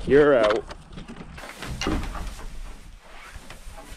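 A metal latch clicks open on a wooden door.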